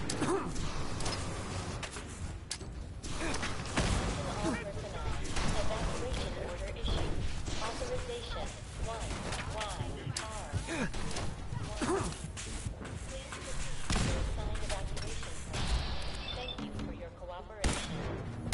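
A laser rifle fires rapid zapping shots.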